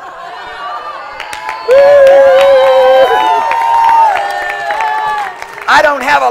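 A crowd cheers and whoops loudly in a large hall.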